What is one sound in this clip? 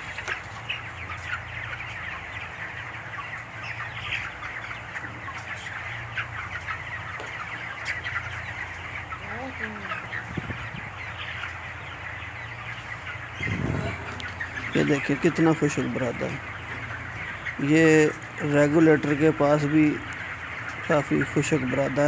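Many chickens chirp and cluck all around.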